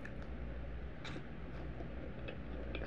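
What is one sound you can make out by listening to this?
A woman takes a bite of a soft pancake close to a microphone.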